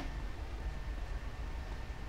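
Footsteps run on a hard floor.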